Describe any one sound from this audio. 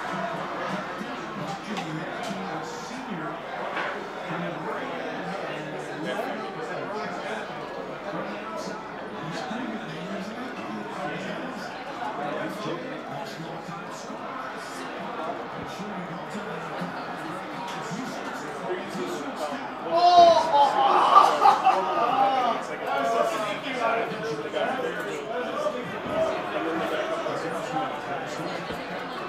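A crowd of men chatter in a noisy room.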